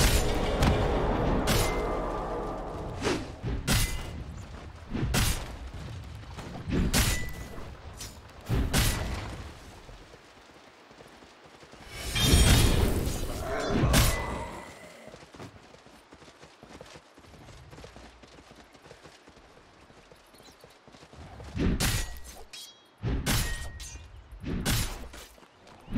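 Sharp magic blasts and hits burst again and again during a fight.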